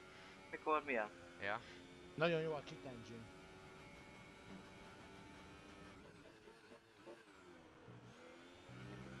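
A racing car engine hums steadily at speed.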